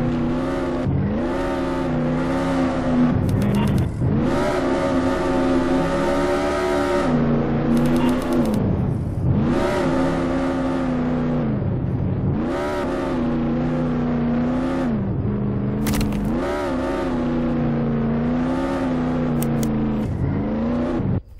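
A video game car engine hums, revving up and slowing down.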